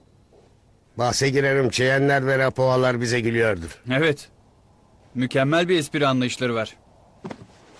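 A man speaks loudly and with feeling, close by.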